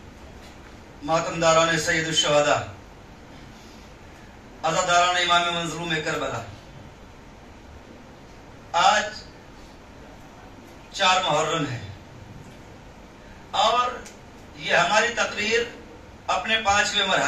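A man speaks slowly and emotively through a microphone and loudspeakers, in phrases with pauses, in a reverberant hall.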